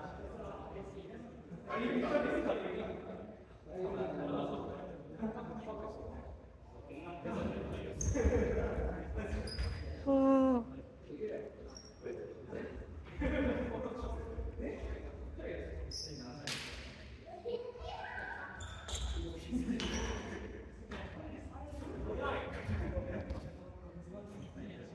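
Voices of young people chatter and call out in a large echoing hall.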